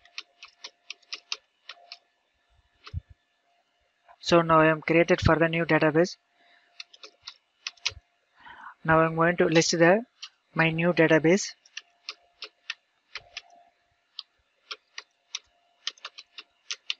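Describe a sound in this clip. Keys on a keyboard click in quick bursts of typing.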